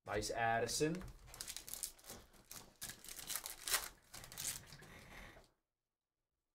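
A foil card wrapper crinkles as it is torn open.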